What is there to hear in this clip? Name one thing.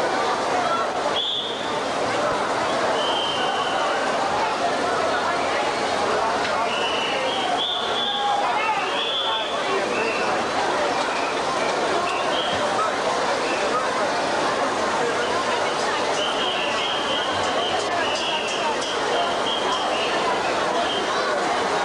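A drum kit is played loudly.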